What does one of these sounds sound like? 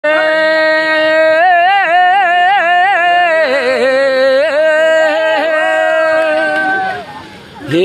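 A group of women sing loudly together outdoors.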